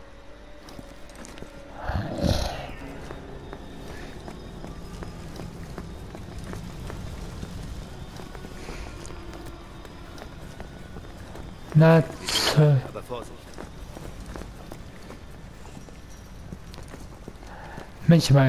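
Heavy boots run on hard pavement.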